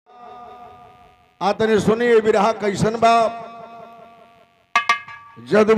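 A man sings loudly into a microphone over a loudspeaker, with a ringing echo.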